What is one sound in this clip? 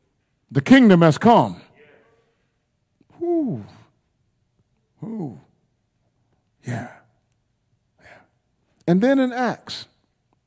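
A man preaches with animation into a microphone in short, emphatic bursts, with pauses between them.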